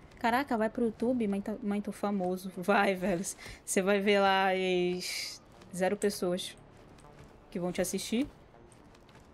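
A young woman talks with animation close to a microphone, now and then laughing.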